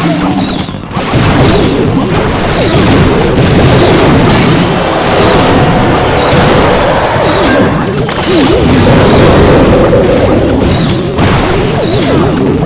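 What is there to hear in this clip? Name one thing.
Game battle sounds of blasts and clashes ring out steadily.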